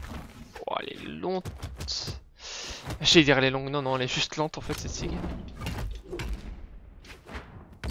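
Quick whooshes sweep past as fighters dash and swing.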